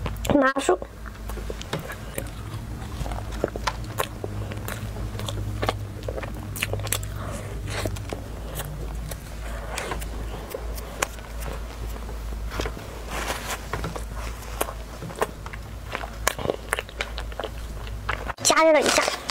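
Food crunches and crackles while being chewed close to a microphone.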